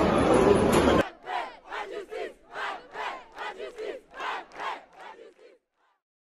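A large crowd chants loudly in rhythmic bursts.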